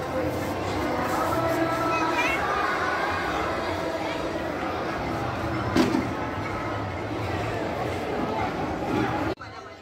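A large crowd of children chatters outdoors in the open air.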